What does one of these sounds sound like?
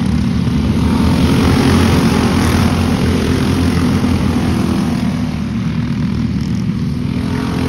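Small engines drone steadily in the distance outdoors.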